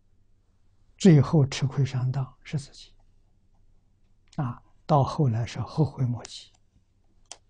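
An elderly man speaks calmly and slowly into a close microphone.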